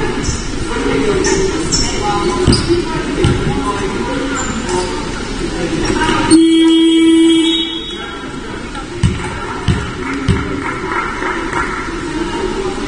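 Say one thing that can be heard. Young women call out to each other across an echoing hall.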